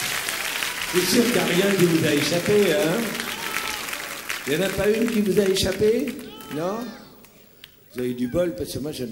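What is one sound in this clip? A man speaks warmly into a microphone, heard through loudspeakers in a large hall.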